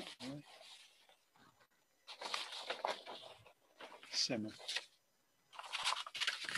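Paper rustles and crinkles as a sheet is moved.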